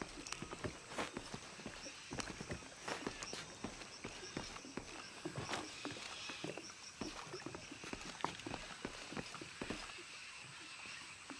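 Footsteps thud and creak on wooden planks.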